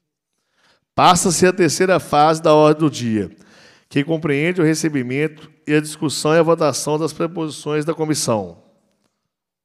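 A man speaks clearly into a microphone, heard through a loudspeaker in a room.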